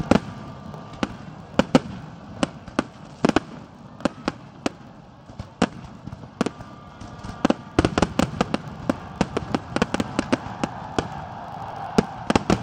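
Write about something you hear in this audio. Fireworks crackle and fizz.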